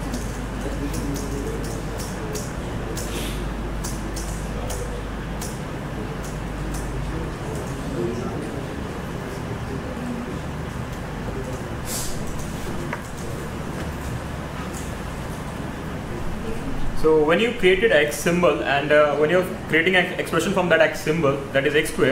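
A man speaks calmly into a microphone, heard through a loudspeaker in a large room.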